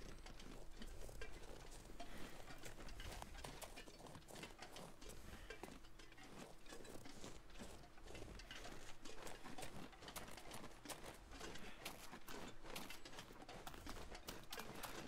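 Footsteps crunch through snow at a steady pace.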